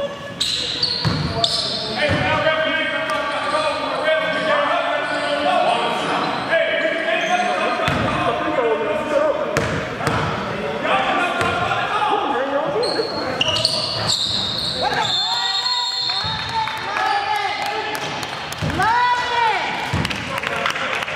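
Young men shout and talk in a large echoing gym.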